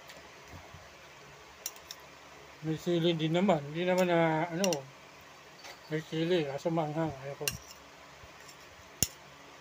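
A metal spoon clinks against a plate.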